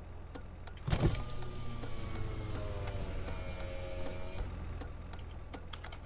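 A car engine revs.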